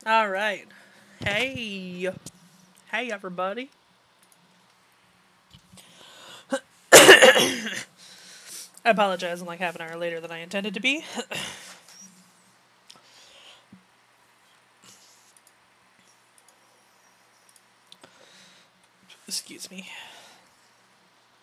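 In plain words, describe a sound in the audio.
A woman talks with animation into a close microphone.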